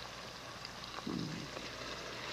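Food pours into a pot.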